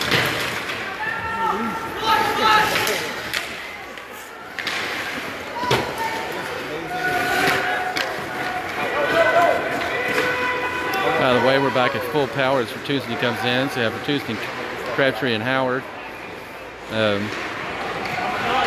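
Spectators nearby shout and cheer in an echoing rink.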